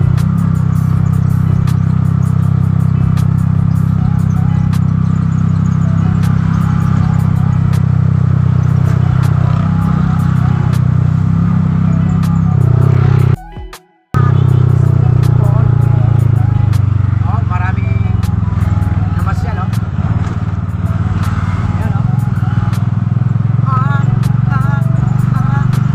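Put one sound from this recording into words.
A vehicle engine hums steadily from inside the cab as it drives along.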